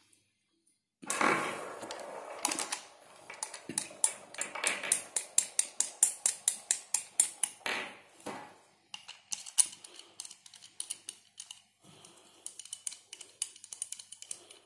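Metal parts click and clink as they are handled and fitted together.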